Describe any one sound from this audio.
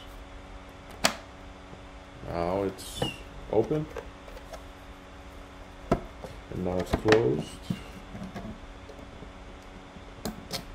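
Plastic clicks and knocks sound up close.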